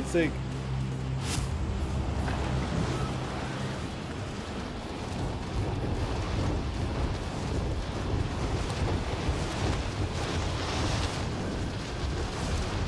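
Wind rushes loudly and steadily during a fast fall through the air.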